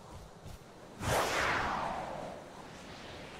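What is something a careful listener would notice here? A loud whoosh rushes past and fades.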